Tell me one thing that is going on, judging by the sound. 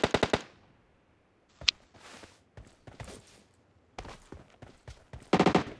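Footsteps tread on dirt.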